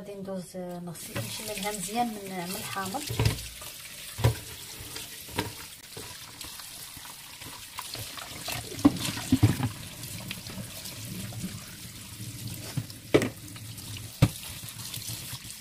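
Water runs steadily from a tap into a colander.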